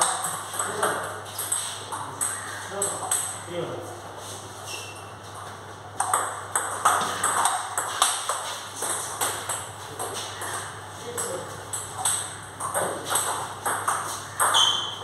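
Table tennis balls click sharply off paddles and tables in a quick rally.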